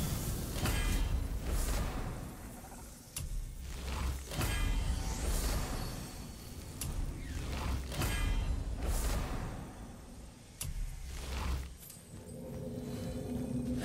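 Magical chimes and whooshes sound again and again.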